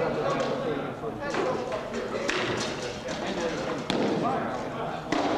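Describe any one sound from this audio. Men talk in a large echoing hall.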